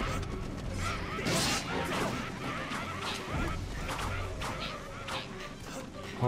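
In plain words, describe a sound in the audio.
Sword slashes and impacts ring out in a fast fight.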